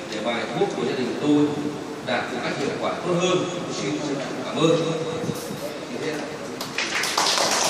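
A man speaks steadily into a microphone, heard through loudspeakers in a large echoing hall.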